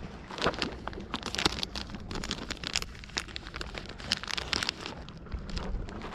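A plastic packet crinkles and rustles close by.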